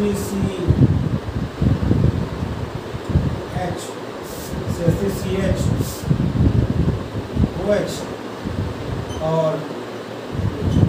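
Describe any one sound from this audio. A marker squeaks across a whiteboard.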